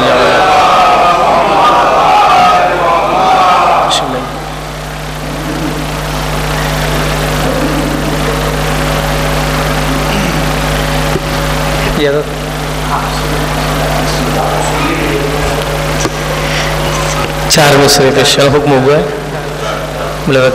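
A young man speaks into a microphone over a loudspeaker in an echoing room.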